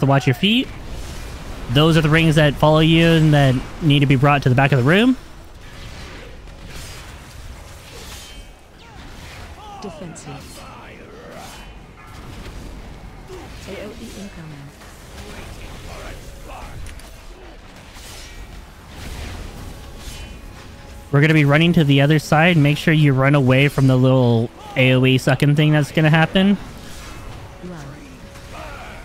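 Magic blasts and combat effects crackle and boom.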